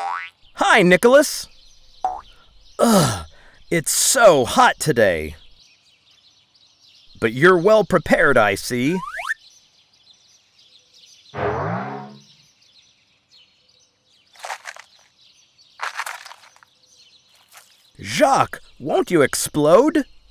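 A man speaks with animation in a cartoon voice.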